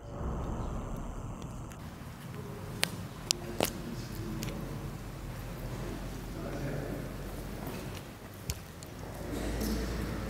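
Footsteps shuffle and tap on a hard floor.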